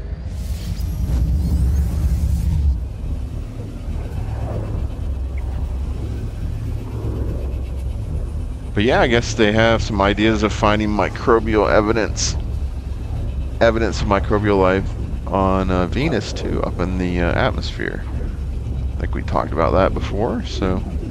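A deep, steady whooshing rumble roars on and on.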